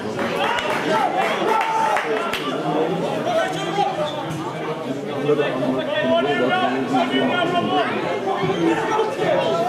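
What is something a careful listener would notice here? A man shouts nearby outdoors.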